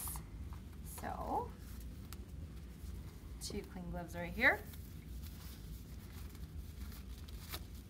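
A rubber glove squeaks and snaps as it is pulled on.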